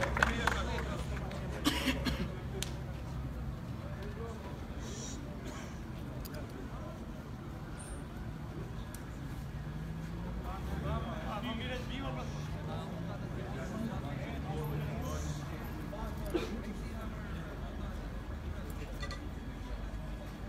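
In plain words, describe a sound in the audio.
Men in a crowd murmur and talk.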